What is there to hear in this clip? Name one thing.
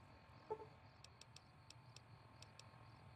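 A game menu clicks softly several times in quick succession.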